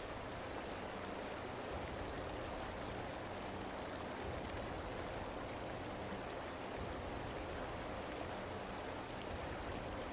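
Steady rain pours down.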